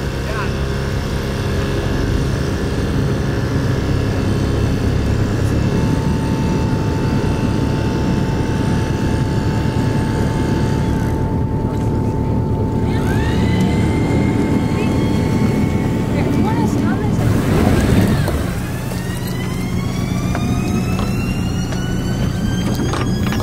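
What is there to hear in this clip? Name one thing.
An outboard motor drones steadily nearby.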